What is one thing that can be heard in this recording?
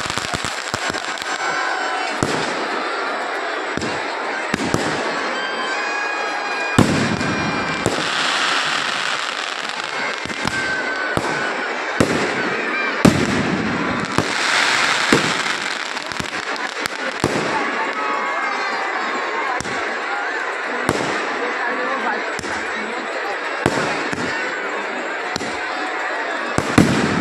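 Fireworks bang and crackle loudly, again and again.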